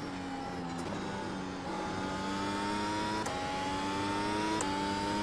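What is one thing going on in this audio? A racing car engine whines at high revs, climbing through the gears with sharp shifts.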